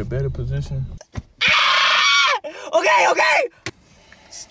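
A young man laughs loudly and screams close by.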